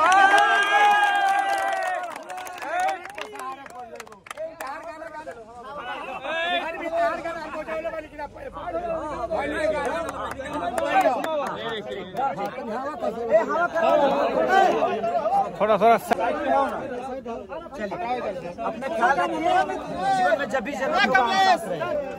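A crowd of men talks and shouts excitedly close by.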